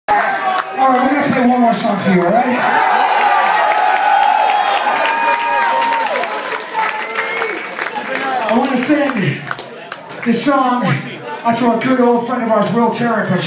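A man sings loudly into a microphone over a loudspeaker system.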